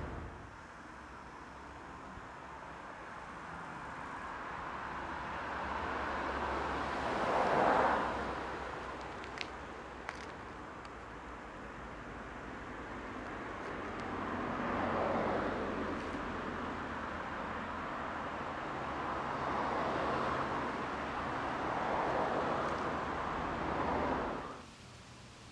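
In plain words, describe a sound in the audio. Wind rustles through leafy bushes and trees in gusts outdoors.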